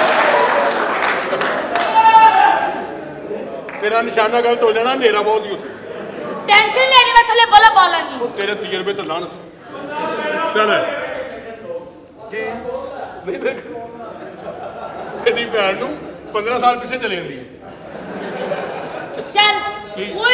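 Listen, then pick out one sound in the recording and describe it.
A man talks loudly and with animation on a stage microphone.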